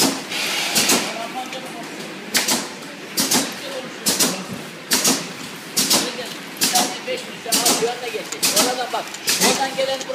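Plastic bottles clatter and knock along a conveyor in regular bursts.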